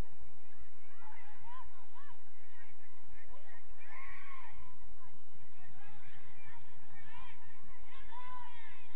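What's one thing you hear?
Young female players shout to each other across an open field in the distance.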